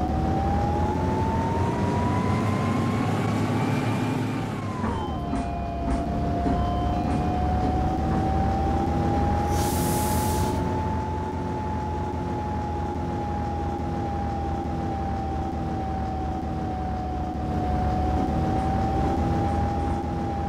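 A bus engine hums steadily, its whine rising and falling with speed.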